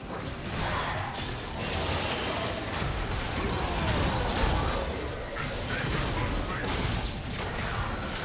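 Blows and hits thud in rapid bursts.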